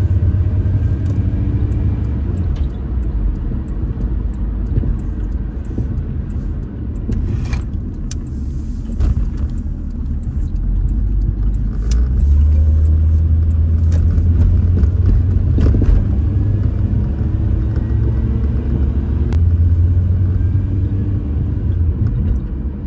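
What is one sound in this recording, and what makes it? A car drives along a road, heard from inside, with a low rumble of engine and tyres on asphalt.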